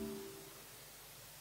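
An organ chord fades away.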